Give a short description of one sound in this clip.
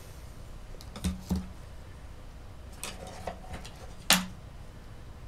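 A clay sculpture bumps and knocks against its stand as it is turned.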